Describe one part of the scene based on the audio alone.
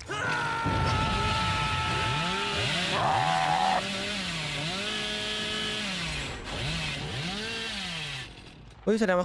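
A chainsaw revs up and down loudly.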